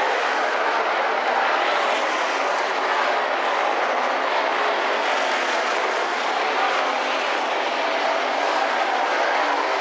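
Tyres churn and scrape over loose dirt.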